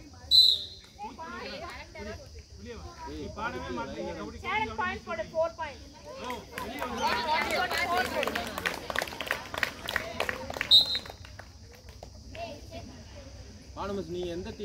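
Young girls shout and cheer loudly outdoors during a game.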